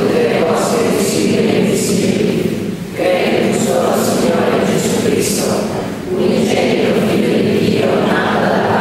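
A middle-aged man speaks calmly into a microphone, heard through loudspeakers in an echoing hall.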